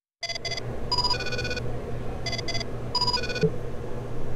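Short electronic beeps chime several times.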